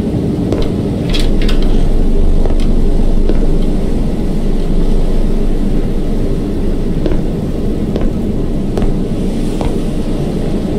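Footsteps creak across a wooden floor.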